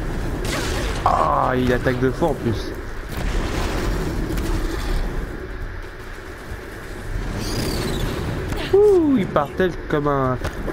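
A large machine creature growls and shrieks.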